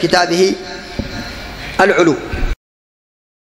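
A man speaks into a microphone in a calm, preaching voice.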